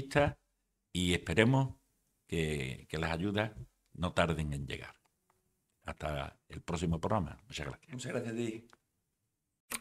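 An elderly man speaks calmly into a microphone, close by.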